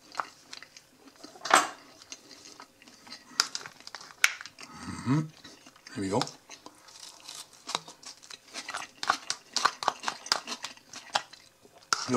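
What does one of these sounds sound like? A fork scrapes and clicks against a plastic container.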